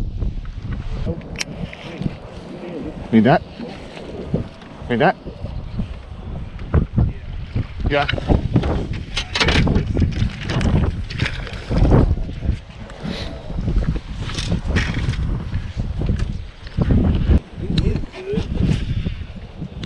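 A man talks with animation close by, outdoors in wind.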